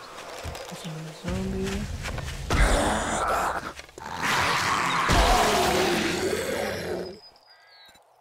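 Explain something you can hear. A wooden bow creaks as its string is drawn.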